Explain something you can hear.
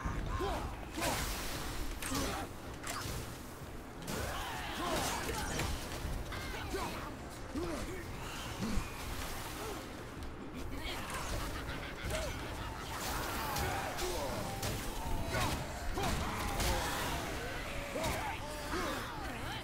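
Weapon blows clash and thud in a game fight.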